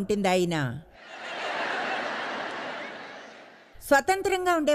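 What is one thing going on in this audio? An audience laughs together.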